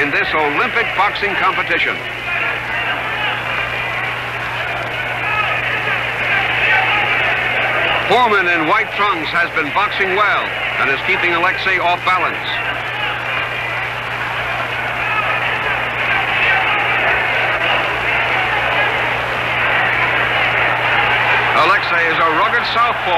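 A large crowd roars and cheers throughout.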